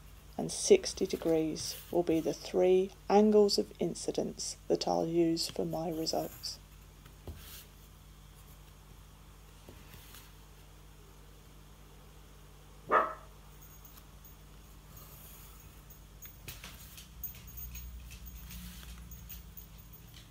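A pencil scratches lines on paper.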